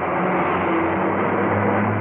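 A jeep engine rumbles as the jeep drives along a road.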